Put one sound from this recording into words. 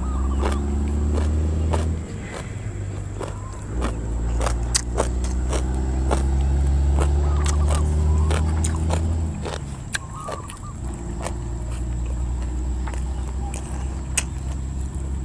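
A man chews and smacks his lips loudly, close to a microphone.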